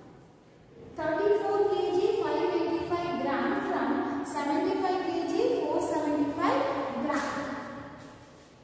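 A young woman speaks clearly and steadily, as if teaching.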